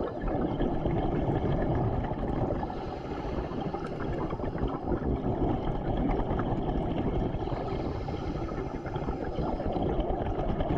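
Muffled underwater rumbling and bubbling go on steadily.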